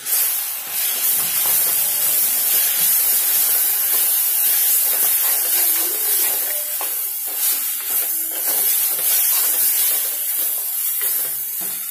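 A spoon scrapes and stirs food in a pot.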